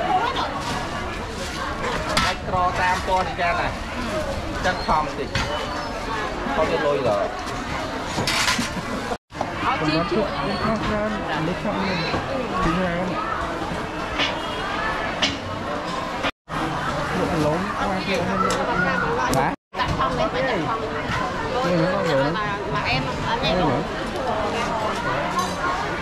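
Many people chatter in a lively crowd.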